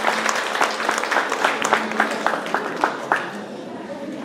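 An audience claps in a large room.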